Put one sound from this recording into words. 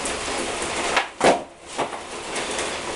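A skateboard clatters and snaps against concrete.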